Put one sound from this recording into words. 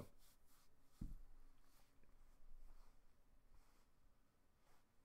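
A man speaks calmly and quietly close to a microphone.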